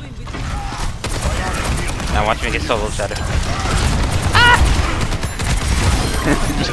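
A futuristic gun fires rapid energy shots.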